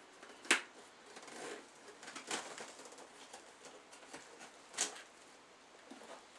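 Paper rustles and crackles as it is handled.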